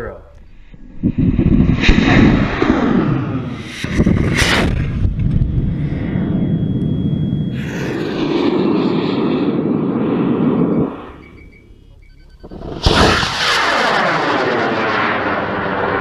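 A rocket motor ignites and roars loudly.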